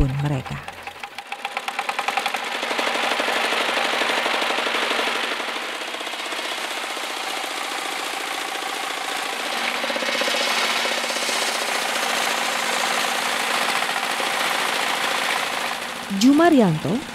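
An engine sputters to life and runs with a steady chugging.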